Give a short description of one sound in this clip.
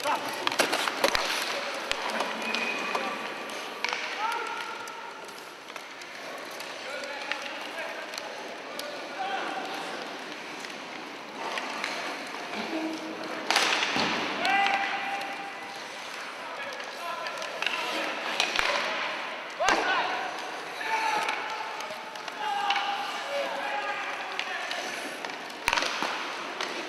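Sled blades scrape across ice.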